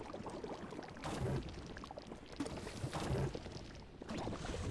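A game character leaps out of the goo with a whooshing burst.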